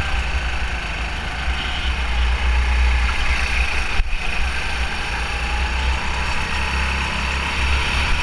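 A go-kart engine drones steadily up close.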